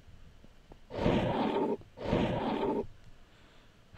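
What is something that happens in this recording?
Blocks are placed with short scraping thuds.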